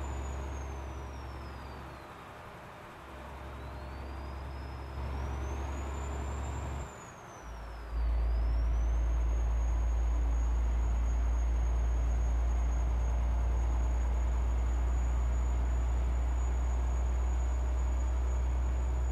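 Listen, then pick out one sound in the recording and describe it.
A truck engine drones steadily, its pitch rising and falling.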